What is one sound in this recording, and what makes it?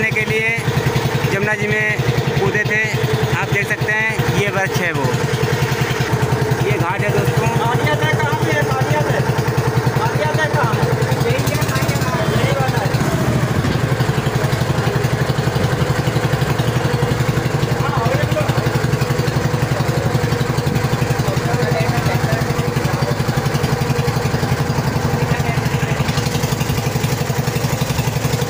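A motorboat engine chugs steadily.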